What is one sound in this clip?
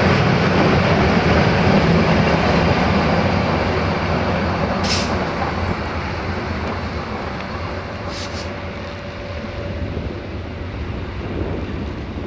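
Electric locomotives rumble past on the rails and slowly fade into the distance.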